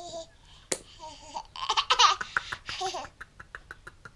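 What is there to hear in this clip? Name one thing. A baby giggles and squeals with delight.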